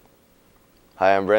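A young man starts to speak into a close microphone.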